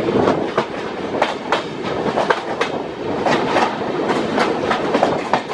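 Train wheels clatter rapidly over rail joints.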